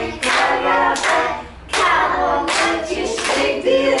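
A woman claps her hands.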